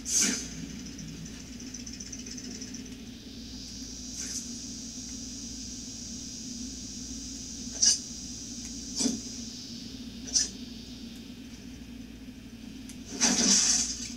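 Video game sounds play from a television.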